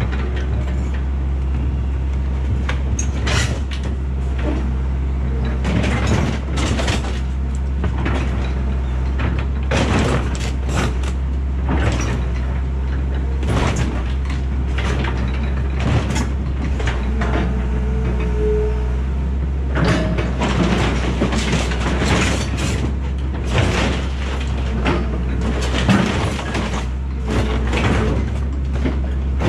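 Scrap metal clanks and crashes as it is dropped into a truck bed.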